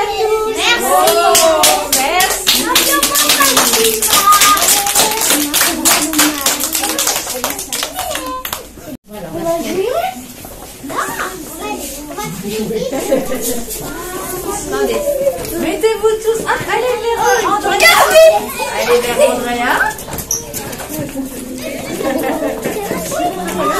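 Young children chatter and call out close by.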